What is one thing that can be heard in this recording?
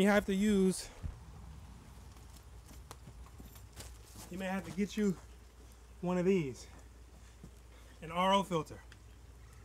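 A man speaks with animation close by, in short bursts.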